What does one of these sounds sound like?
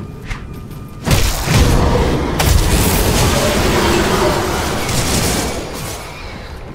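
Magic spell blasts crackle and boom in a fight.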